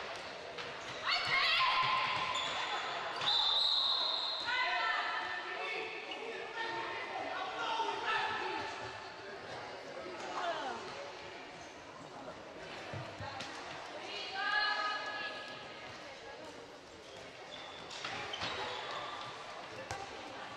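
Sports shoes squeak sharply on a hard court, echoing in a large hall.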